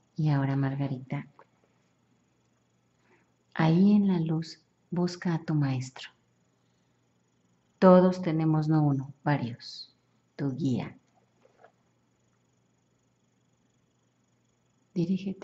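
A young woman speaks close by, calmly and in short bursts.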